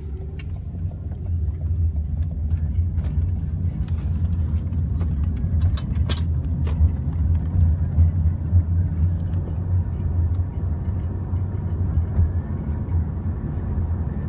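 Tyres roar on the road.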